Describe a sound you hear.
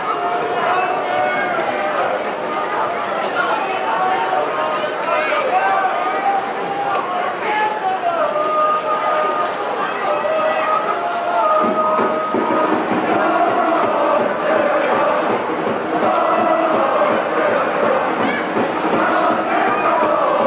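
A large crowd chants and cheers loudly in an open stadium.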